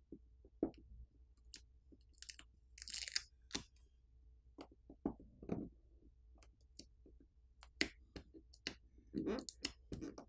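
A battery is peeled up from its adhesive with a crackling sound.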